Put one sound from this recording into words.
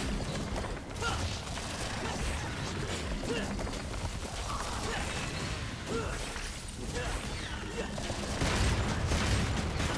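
Gunfire and combat effects from a video game crash and boom.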